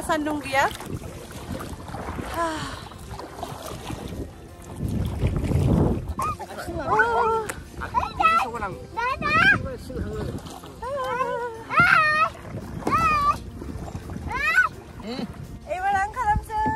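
A young woman talks with animation and laughs close by.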